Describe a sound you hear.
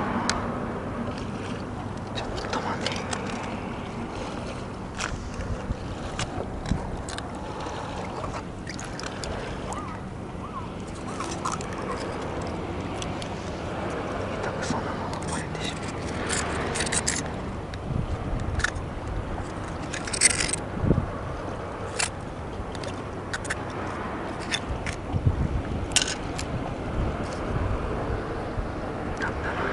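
Water laps gently against a stone wall outdoors.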